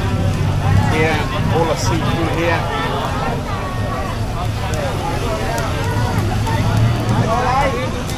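Food sizzles on a grill.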